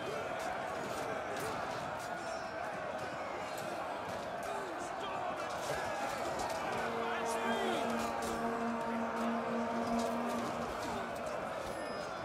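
A large crowd of soldiers roars and shouts in battle.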